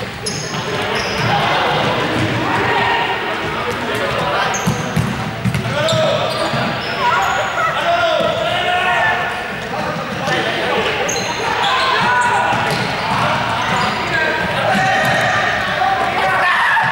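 Young men and women shout and call out while they play, in a large echoing hall.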